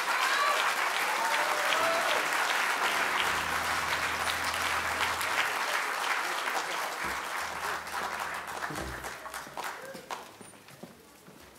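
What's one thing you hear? An audience applauds loudly in a large hall, then the applause fades.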